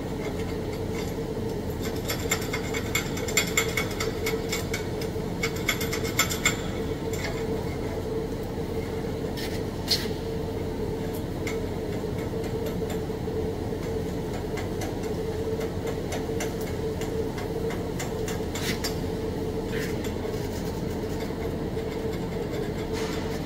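A welding torch hisses and crackles steadily.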